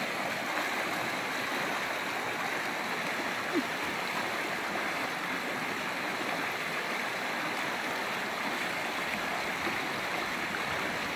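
A shallow stream rushes over rocks.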